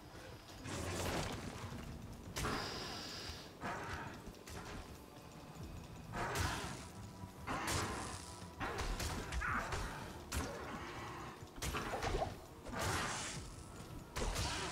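Creatures snarl and blows land in a fight.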